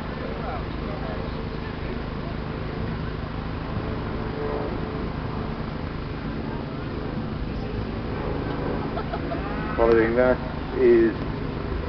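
A crowd murmurs and chatters outdoors.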